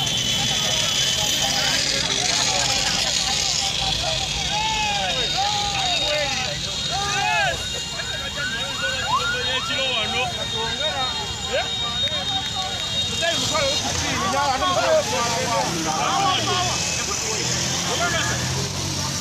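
Motorcycle engines buzz close by in slow traffic.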